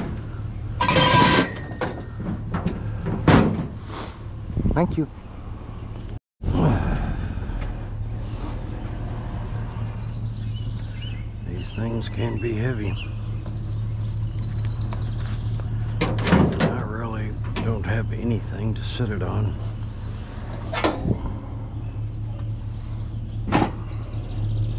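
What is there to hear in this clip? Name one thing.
Metal scrap clanks and rattles as pieces are tossed into a truck bed.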